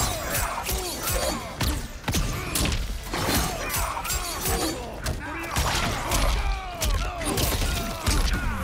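Punches and kicks land with heavy thuds and cracks.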